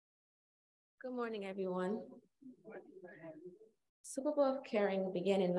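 A woman speaks calmly through a microphone in a large echoing hall.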